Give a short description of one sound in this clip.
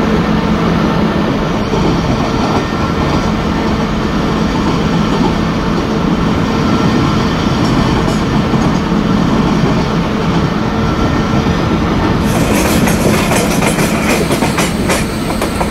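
An electric locomotive's motors hum with a steady drone.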